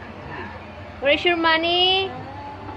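A baby squeals loudly close by.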